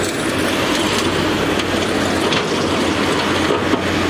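A truck drives past on the road.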